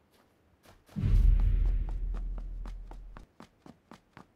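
A loud gunshot booms and rumbles away.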